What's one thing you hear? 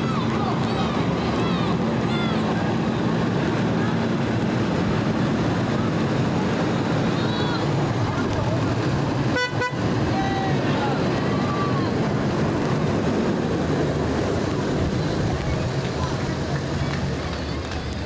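A fire engine's motor rumbles loudly as it rolls slowly past.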